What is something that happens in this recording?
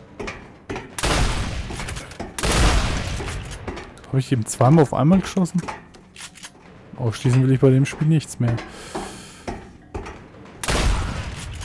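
A shotgun fires loud, booming blasts that ring out in an echoing room.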